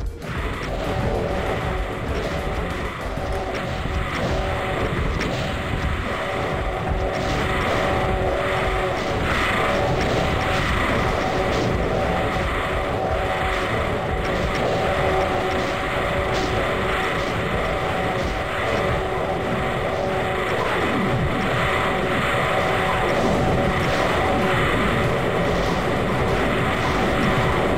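Fireballs whoosh and burst in a rapid, constant barrage.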